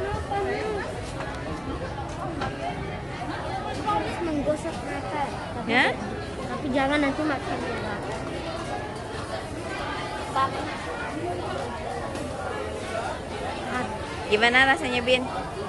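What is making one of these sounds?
Many people chatter around the recording spot.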